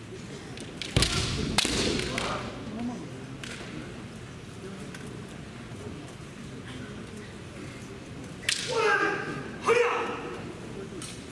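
Fencers shout loud, drawn-out cries in a large echoing hall.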